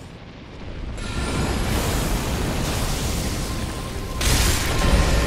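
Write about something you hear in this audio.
A huge creature rumbles and roars deeply.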